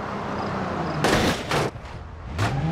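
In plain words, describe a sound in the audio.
A car splashes heavily into water.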